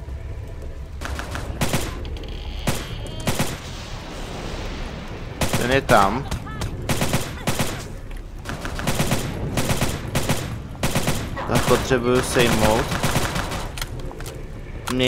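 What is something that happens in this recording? A gun fires repeated shots with sharp echoing cracks.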